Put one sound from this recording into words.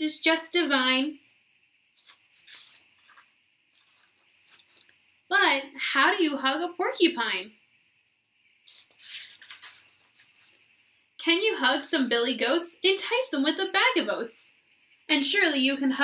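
A young woman reads aloud expressively, close to the microphone.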